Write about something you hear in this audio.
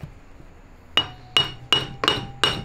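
A hammer strikes metal with sharp ringing taps.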